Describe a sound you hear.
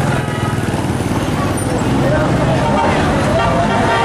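Motorcycle engines rumble close by.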